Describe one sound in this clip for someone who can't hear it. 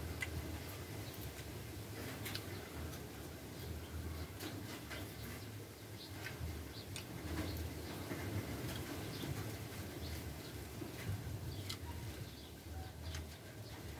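Leaves rustle and tear as a man picks them.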